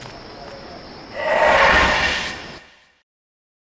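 A magical shimmering whoosh swells and fades.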